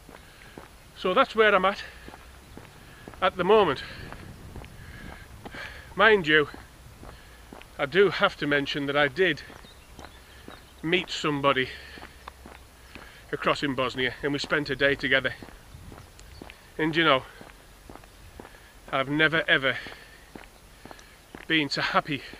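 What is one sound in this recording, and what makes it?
A middle-aged man talks calmly and close up, in short bursts.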